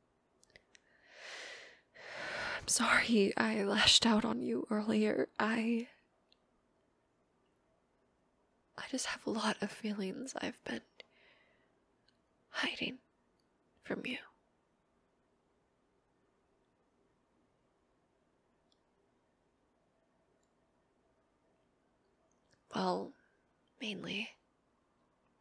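A young woman speaks softly and breathily, close to a microphone.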